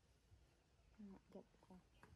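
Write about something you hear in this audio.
A woman speaks softly close by.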